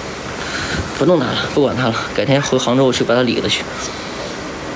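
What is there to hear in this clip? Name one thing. A young man speaks casually, close to a microphone.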